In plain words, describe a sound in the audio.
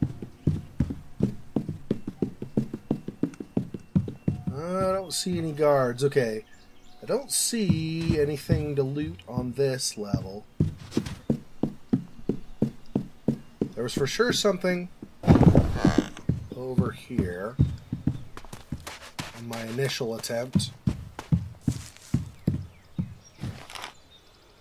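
Quick running footsteps thump on wooden planks and dirt.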